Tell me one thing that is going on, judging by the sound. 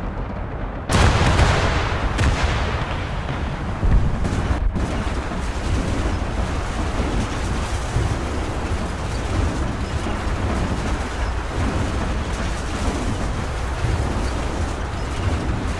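Wind rushes and roars around a falling, burning aircraft.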